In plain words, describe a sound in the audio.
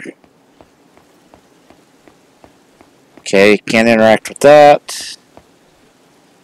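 Footsteps tap lightly and steadily on a hard tiled floor.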